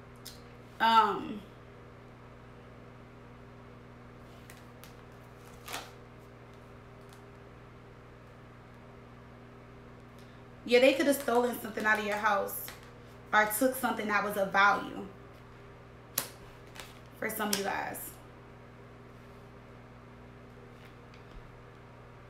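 Playing cards riffle and slap softly as they are shuffled.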